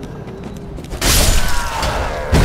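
A sword strikes with a loud metallic clash.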